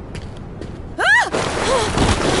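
A large creature lets out a shrill, rising screech.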